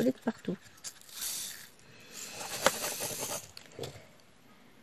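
Small plastic beads rattle as a tray is shaken.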